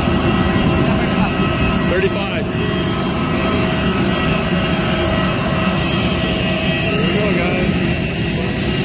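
A jet engine whines and roars steadily nearby.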